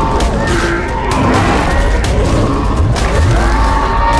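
Blows land with heavy thumps.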